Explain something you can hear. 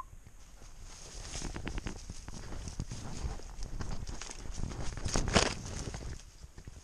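Footsteps crunch through leaves and undergrowth.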